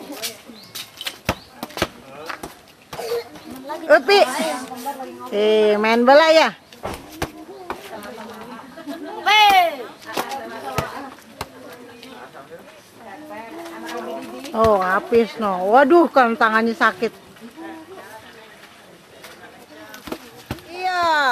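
Young children shout and chatter excitedly nearby, outdoors.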